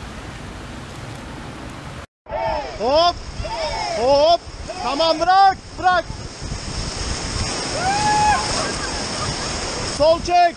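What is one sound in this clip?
River water rushes loudly over rapids.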